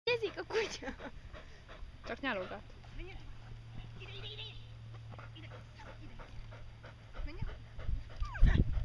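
A woman calls out commands to a dog with animation.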